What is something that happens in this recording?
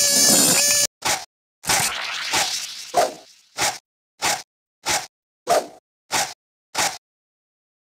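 Fists swing and punch in quick, repeated blows.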